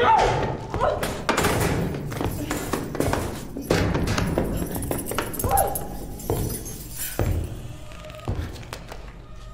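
Fists bang hard on a metal door.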